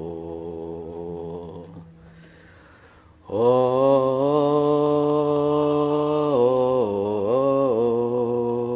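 Slow, sustained choral music plays.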